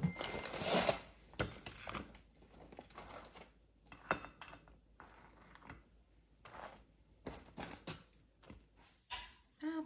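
Metal tongs click as food is placed on a plate.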